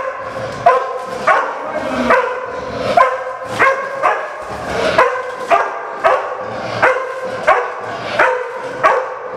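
A dog barks repeatedly and loudly.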